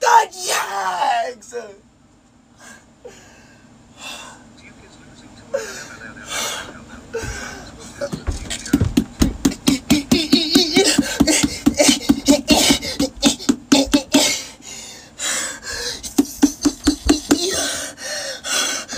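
A young man shouts and grunts close by.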